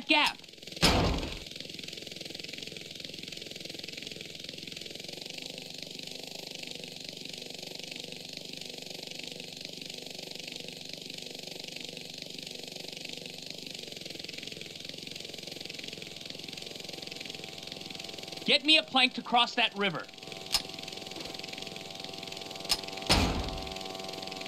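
A small helicopter's engine and rotor whir steadily.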